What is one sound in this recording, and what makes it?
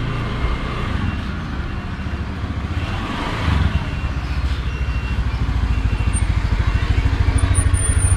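A motorcycle engine hums as it rides closer and grows louder.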